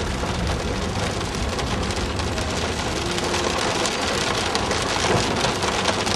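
Windscreen wipers swish across the glass.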